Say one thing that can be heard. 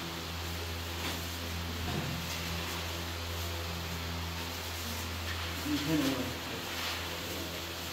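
Plastic bags rustle and crinkle.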